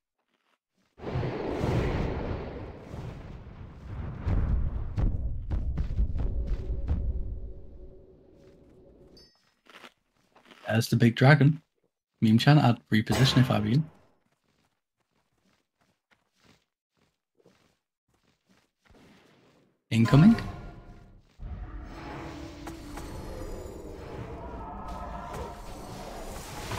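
Fantasy battle sounds clash and boom, with spells whooshing.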